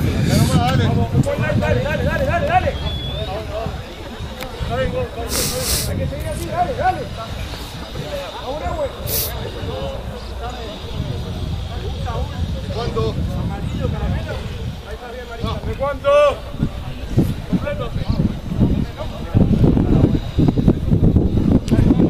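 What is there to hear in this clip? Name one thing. Rugby players call out to each other across an open field.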